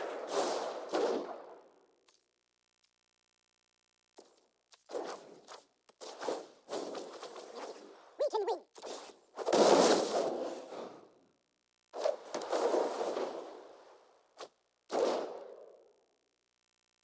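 Short digital whooshes and chimes play as game cards move.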